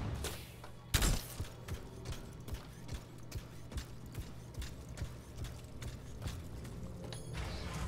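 Heavy metal footsteps clank on a hard floor.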